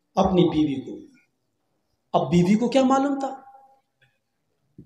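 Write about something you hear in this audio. A man speaks with animation into a microphone, heard over a loudspeaker.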